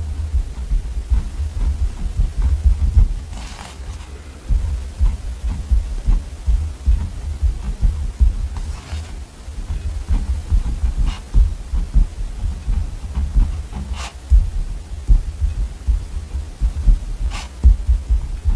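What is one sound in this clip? A pen scratches on paper while writing.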